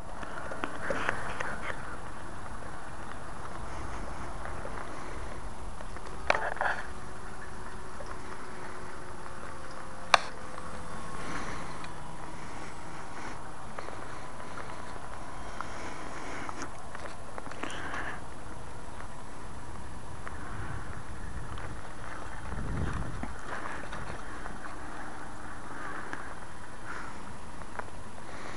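A small aircraft drones faintly high overhead.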